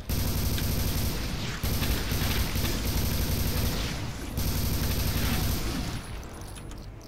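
A heavy gun fires in rapid bursts.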